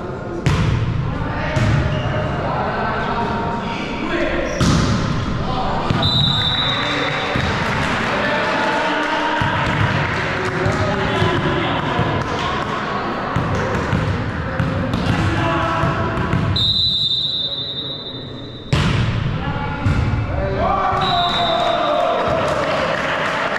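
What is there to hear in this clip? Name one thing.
Young men shout and call out to each other across an echoing hall.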